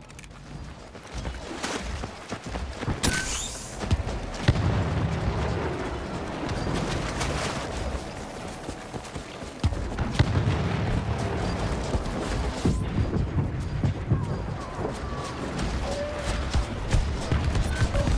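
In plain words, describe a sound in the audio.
Footsteps crunch over leaves and undergrowth.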